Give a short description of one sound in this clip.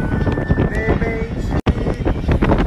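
A man sings loudly close by.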